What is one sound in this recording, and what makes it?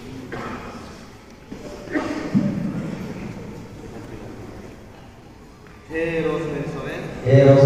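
A man speaks calmly nearby in a room with some echo.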